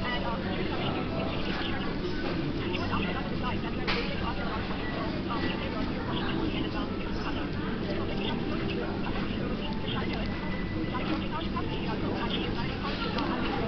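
Plastic wrapping crinkles and rustles as hands tear it open.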